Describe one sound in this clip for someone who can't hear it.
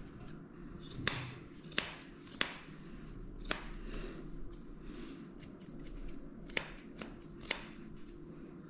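Small scissors snip sharply at close range.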